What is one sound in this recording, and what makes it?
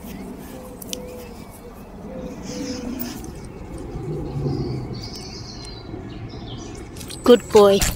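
A dog sniffs at the grass.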